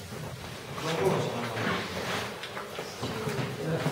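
Papers rustle.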